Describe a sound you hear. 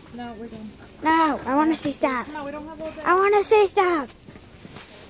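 A young boy shouts excitedly close by.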